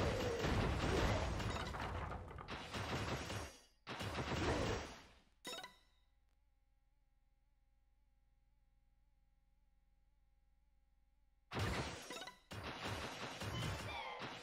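Game combat effects burst and crackle as enemies are struck.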